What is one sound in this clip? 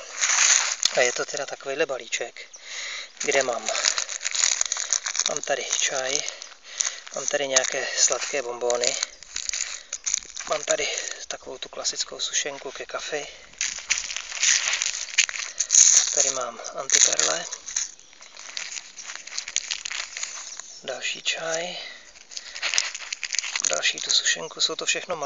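Plastic wrappers crinkle and rustle as they are handled.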